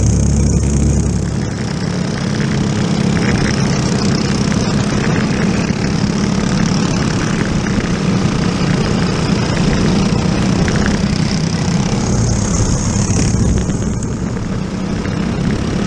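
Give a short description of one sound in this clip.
Other kart engines buzz nearby.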